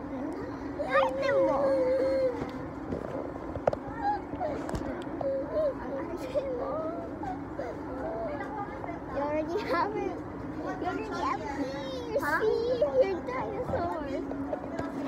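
Young girls talk and laugh close by.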